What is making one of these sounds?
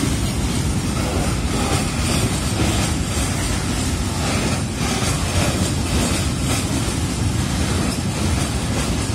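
A freight train rumbles and clatters steadily along the tracks.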